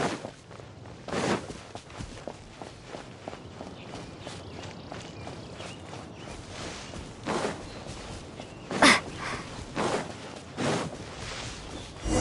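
Light footsteps patter quickly across grass.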